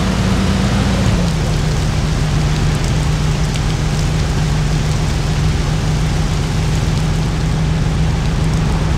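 Tyres roll over a road.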